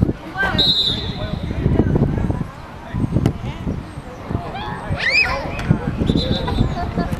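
Wind blows across the microphone.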